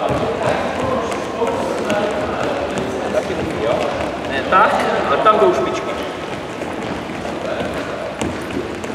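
Sneakers squeak and patter on a hard floor.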